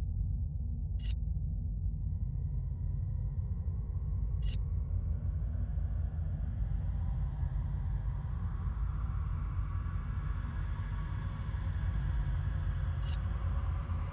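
A page turns with a short, sharp click.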